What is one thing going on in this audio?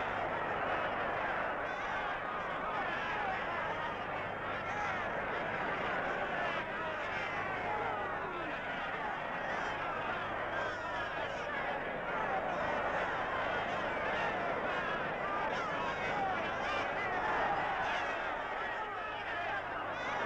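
A large crowd of men shouts and cheers throughout.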